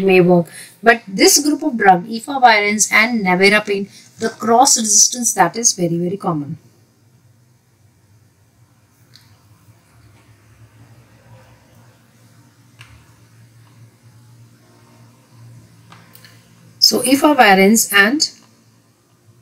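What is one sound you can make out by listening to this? A woman speaks clearly into a close microphone, explaining at a steady pace.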